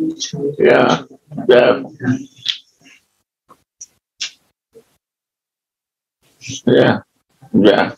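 An elderly man speaks calmly over an online call, pausing between phrases.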